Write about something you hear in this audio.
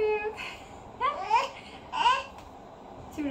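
A toddler laughs and squeals.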